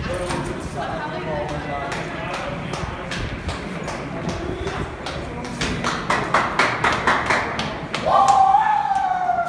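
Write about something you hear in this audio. A crowd cheers and shouts in a large echoing space.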